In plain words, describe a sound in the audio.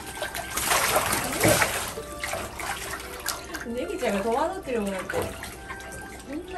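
Water splashes and sloshes as ducks paddle and flap close by.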